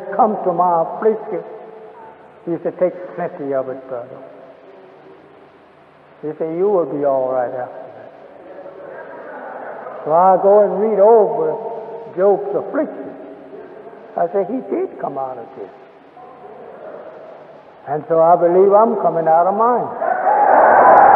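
A man speaks slowly and forcefully.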